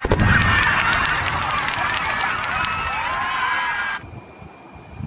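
Fireworks burst and crackle with whistling trails.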